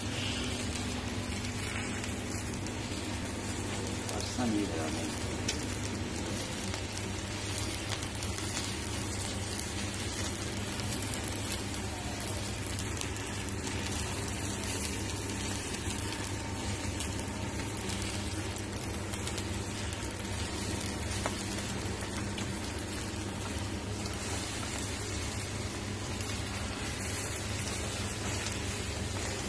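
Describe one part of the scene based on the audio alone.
Meat sizzles and hisses over hot coals.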